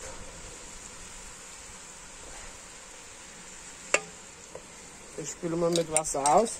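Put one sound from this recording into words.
A stew bubbles gently in a pot.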